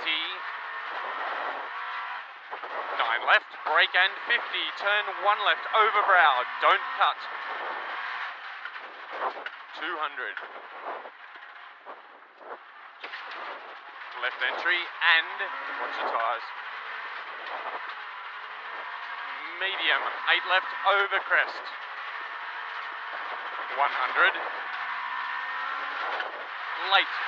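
Gravel crunches and rattles under the tyres.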